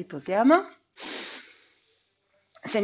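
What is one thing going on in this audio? A woman breathes out audibly.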